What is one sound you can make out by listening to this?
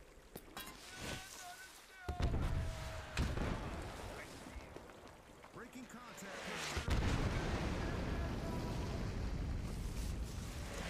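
Explosions boom with deep rumbling blasts.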